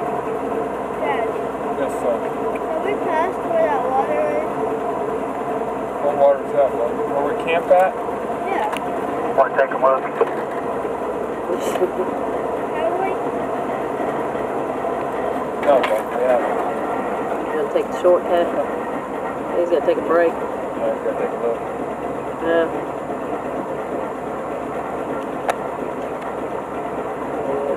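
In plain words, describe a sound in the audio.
Tyres crunch over rocks and dirt.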